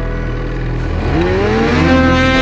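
A snowmobile engine revs up sharply and roars.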